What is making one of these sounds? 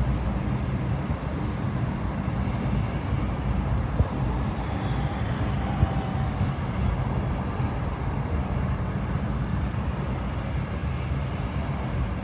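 Tyres roll on a wet road.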